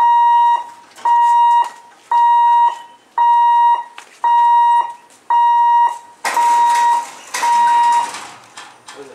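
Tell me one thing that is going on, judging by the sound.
A level crossing warning bell beeps loudly in a steady repeating rhythm.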